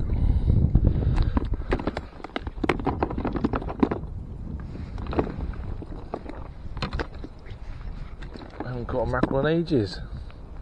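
Fishing tackle clicks and rattles as it is handled.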